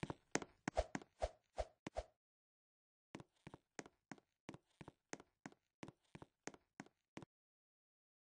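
Quick footsteps patter on a hard floor.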